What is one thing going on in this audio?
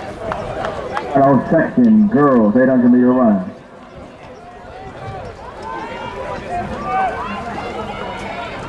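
A crowd of young people chatters and calls out in the open air.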